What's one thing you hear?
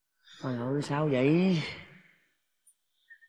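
A young man sobs and wails loudly, close by.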